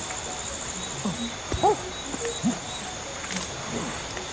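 A chimpanzee hoots in short rising and falling calls.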